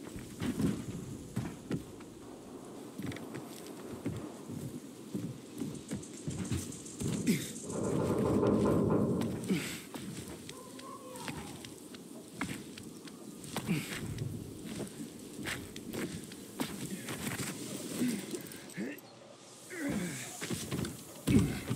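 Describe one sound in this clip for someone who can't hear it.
Footsteps thud quickly on wooden planks and rooftops.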